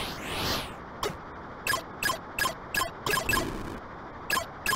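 Electronic laser shots zap in short, sharp bursts.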